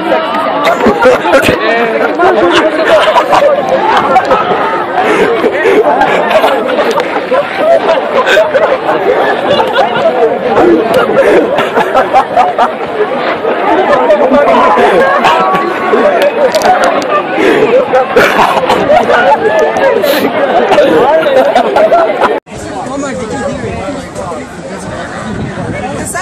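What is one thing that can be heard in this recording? A crowd of teenagers talks and shouts loudly outdoors close by.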